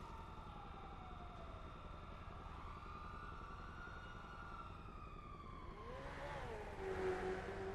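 A siren wails up and down in slow sweeps.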